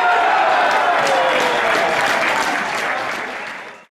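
Spectators clap their hands.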